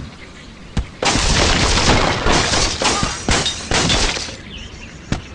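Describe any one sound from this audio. Wooden blocks crash and clatter as a structure breaks apart.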